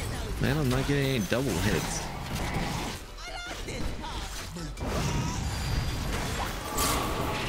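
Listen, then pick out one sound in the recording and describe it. Game battle effects clash and whoosh throughout.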